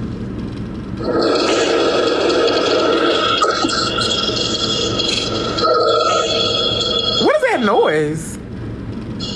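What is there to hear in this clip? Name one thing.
A young woman talks and laughs with animation, heard through a phone speaker.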